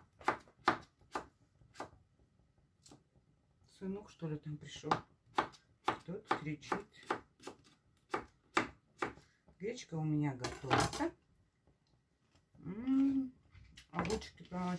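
A knife chops vegetables on a cutting board with sharp, regular knocks.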